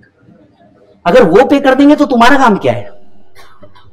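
A man speaks loudly and with animation into a microphone.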